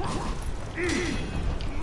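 Metal weapons clang together in a fight.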